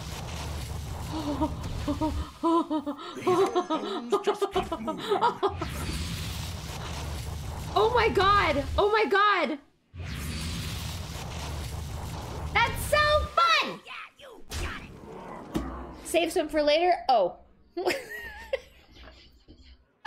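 A young woman talks and laughs with animation into a close microphone.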